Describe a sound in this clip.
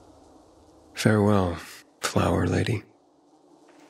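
A man speaks calmly and briefly, close by.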